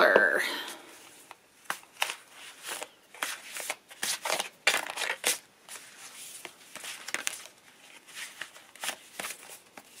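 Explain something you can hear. Stacks of paper cards rustle and flap as they are shuffled.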